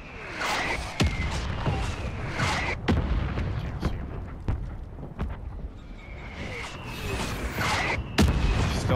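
A rifle fires single loud shots that echo off.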